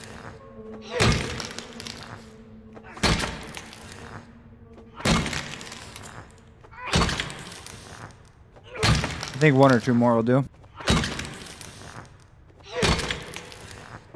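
A heavy hammer thuds on a hard floor again and again.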